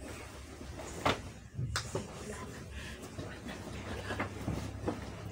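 Bedding rustles as a person shifts on a bed.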